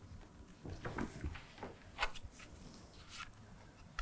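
A plastic ruler taps down on a table.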